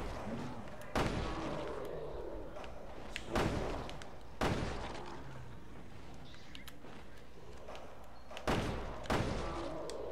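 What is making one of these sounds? Gunshots fire loudly, with a booming echo.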